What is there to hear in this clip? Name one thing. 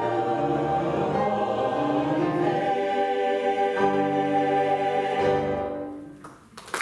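A mixed choir sings in harmony in a large echoing hall.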